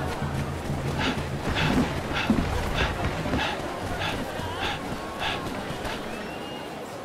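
Footsteps run quickly over wooden boards and packed earth.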